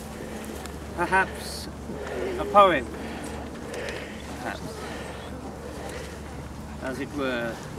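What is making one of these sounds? An adult man speaks out loud outdoors.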